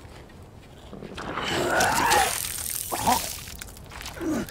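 A man groans and grunts with effort, close by.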